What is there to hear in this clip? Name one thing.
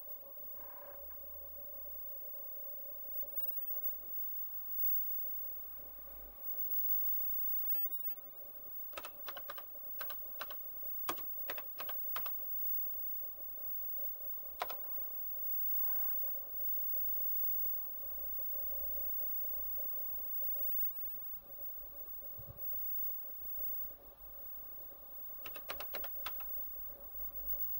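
An old computer hums steadily.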